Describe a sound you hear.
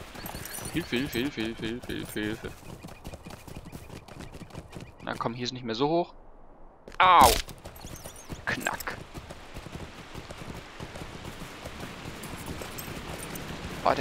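A horse's hooves thud steadily on grass and rock.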